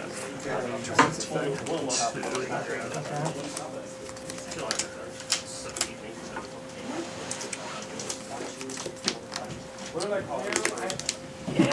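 Cards are shuffled in the hands with a soft riffle.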